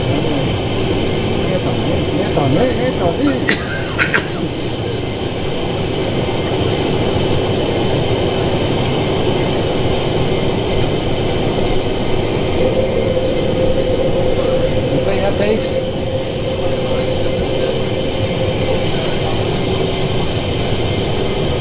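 Jet engines roar loudly and steadily as an airliner takes off and climbs.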